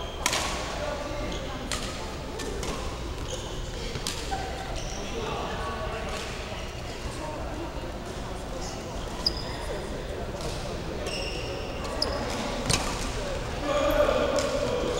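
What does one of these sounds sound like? Rackets hit a shuttlecock with sharp pops in an echoing hall.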